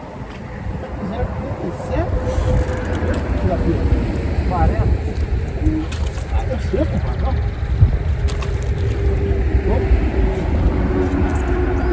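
Water laps against a wooden dock.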